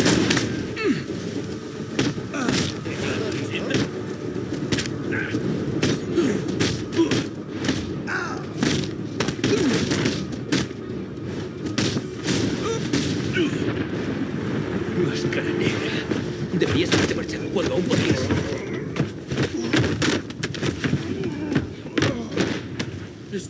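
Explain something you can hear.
Punches and kicks land with heavy thuds again and again.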